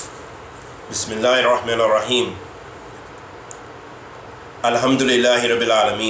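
A man reads aloud calmly, close to a microphone.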